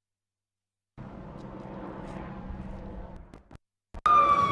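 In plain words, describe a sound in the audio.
A helicopter flies overhead with a thudding rotor.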